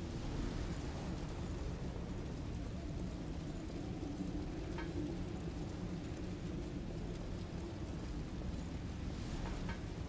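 Footsteps run across wooden and metal boards.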